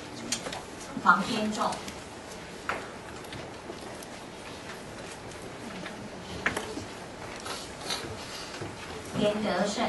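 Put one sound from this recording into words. A woman speaks briefly through a microphone.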